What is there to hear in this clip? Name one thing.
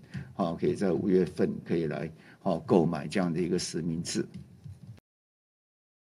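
A middle-aged man speaks calmly through a microphone, slightly muffled by a face mask.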